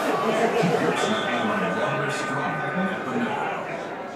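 A video game's hockey horn sounds to end a period.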